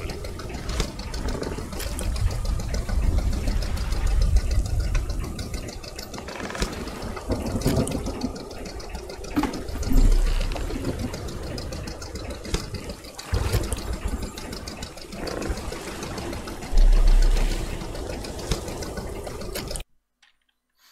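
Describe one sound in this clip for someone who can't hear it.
Water laps against a small boat's hull.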